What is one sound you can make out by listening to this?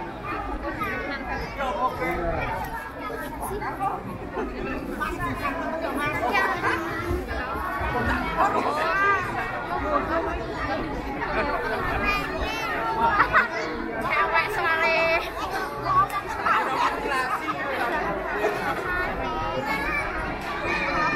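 A crowd of onlookers chatters outdoors.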